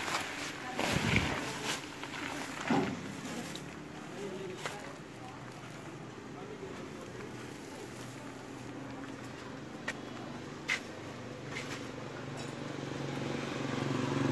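Hands rustle through a pile of dry roots.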